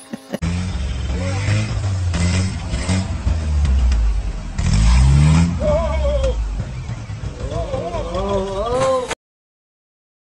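An off-road engine rumbles and revs loudly.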